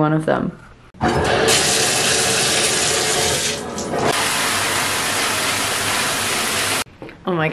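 Water sprays steadily from a shower head.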